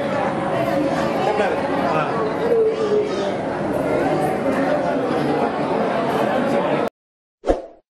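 A large crowd murmurs and chatters indoors.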